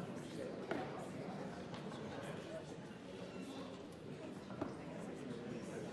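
A man speaks steadily through a microphone in a large hall.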